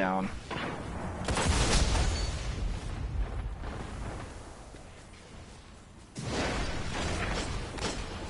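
A rushing whoosh sweeps past.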